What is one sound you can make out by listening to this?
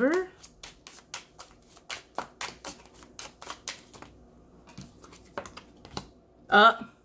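Cards are shuffled with quick, crisp flicks.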